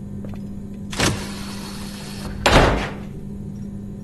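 A metal elevator door slides open.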